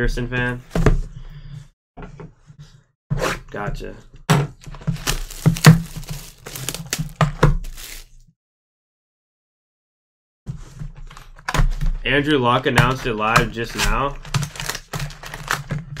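Hands handle and shuffle a cardboard box close by.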